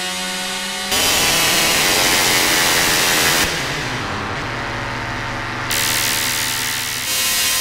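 A synthesizer plays buzzing electronic tones and noisy textures that change abruptly.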